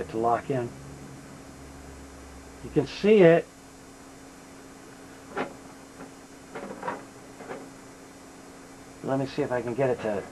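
A low electrical hum drones steadily.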